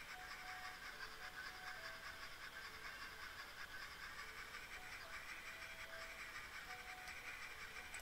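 A roller coaster train rattles along its track.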